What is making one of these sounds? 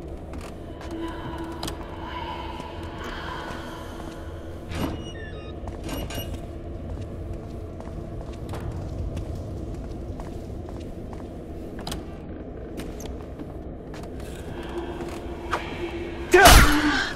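Footsteps tread slowly on a hard floor in an echoing room.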